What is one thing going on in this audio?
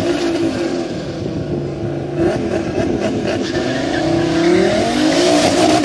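A car engine idles and revs loudly.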